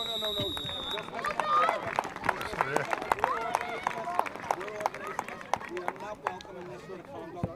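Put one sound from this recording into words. A crowd of spectators claps and cheers loudly.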